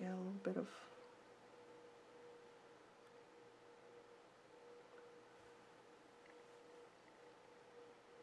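A paintbrush strokes softly across paper.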